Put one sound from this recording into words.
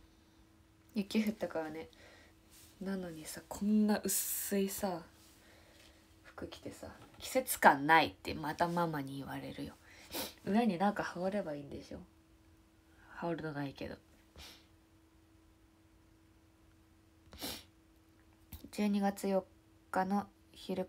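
A young woman talks casually and close by, in short bursts with pauses.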